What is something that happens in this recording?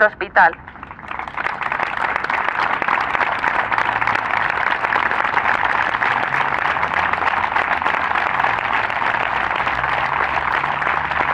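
A crowd applauds steadily outdoors.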